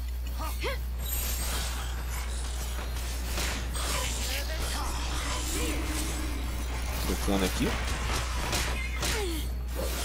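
Swords clash and magic blasts whoosh in a fast battle.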